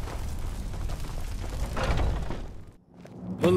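A heavy wooden door creaks open.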